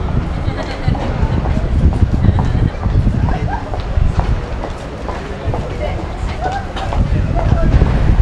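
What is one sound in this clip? Cars drive past along a street, tyres humming.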